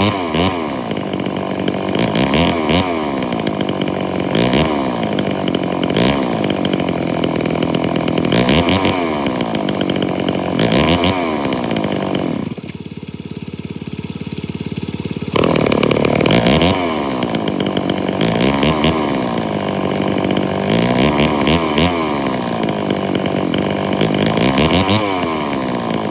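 A chainsaw engine revs up and down repeatedly, close by.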